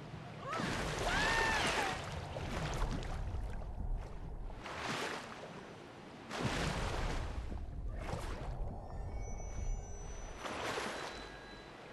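Muffled underwater rushing swirls around.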